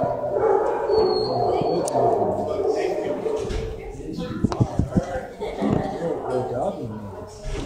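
A dog whines and grumbles close by.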